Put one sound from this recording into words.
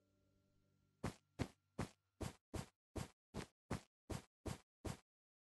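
Footsteps thud on stone at an even walking pace.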